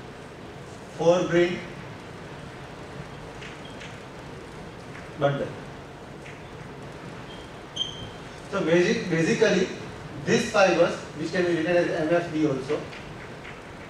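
A man speaks calmly, lecturing.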